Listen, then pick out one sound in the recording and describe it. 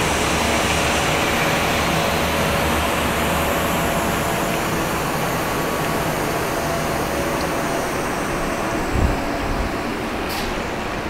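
Industrial machinery hums and whirs steadily nearby.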